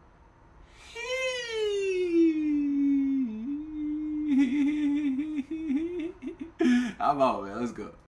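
A young man sings a long, wavering note.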